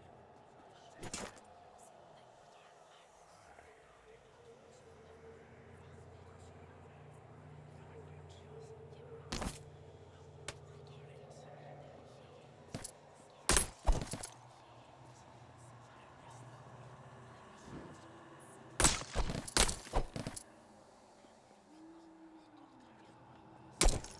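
Short, sharp game sound effects click and swish now and then.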